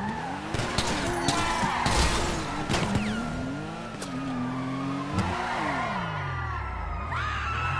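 Car tyres screech on the road during sharp turns.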